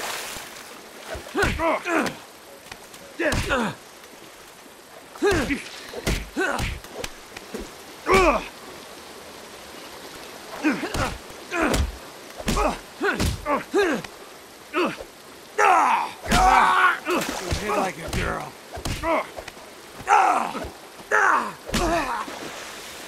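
Men grunt and shout while fighting.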